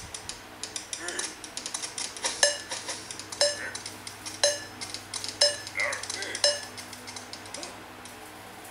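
A mobile game plays quick crunching and popping effects.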